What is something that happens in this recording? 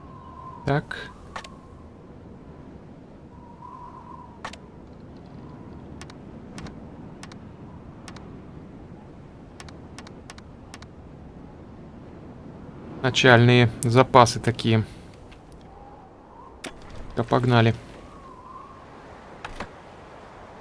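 Short clicks tick now and then from a game menu.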